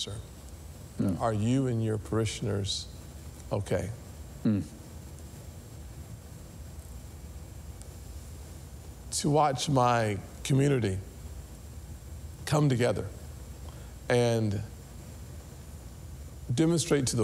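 A man speaks calmly and deliberately into a microphone, in short bursts with pauses.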